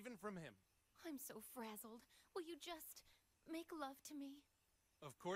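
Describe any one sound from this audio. A woman speaks softly and pleadingly.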